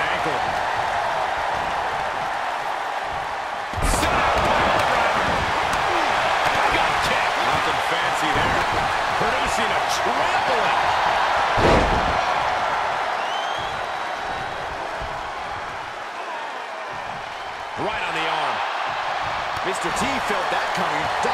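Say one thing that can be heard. A large crowd roars and cheers steadily.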